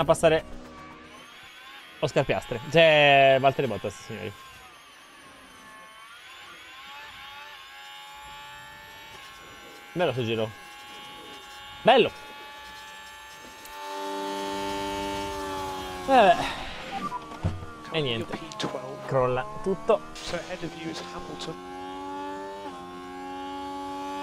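Racing car engines whine steadily, rising and falling in pitch.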